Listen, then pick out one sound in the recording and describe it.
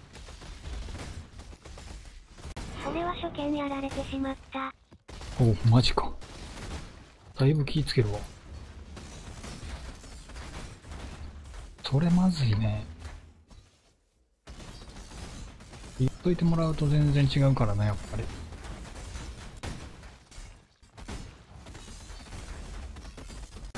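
Magic blasts and crackles sound in a fast, busy fight.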